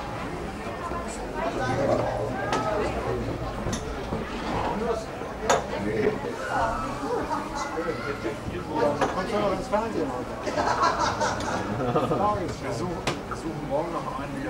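Several men talk and chatter nearby, with a busy murmur of voices.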